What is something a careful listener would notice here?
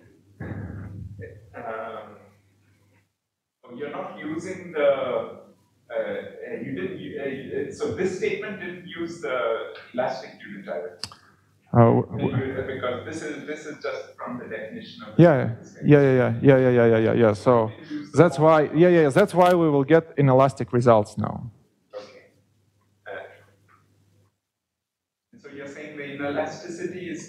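A young man lectures calmly through a headset microphone, with pauses.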